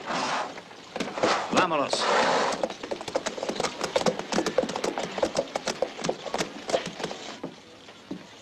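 Horse hooves clop on hard ground.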